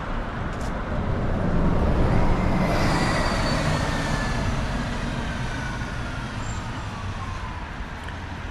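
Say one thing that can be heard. A bus drives past close by and pulls away down the street.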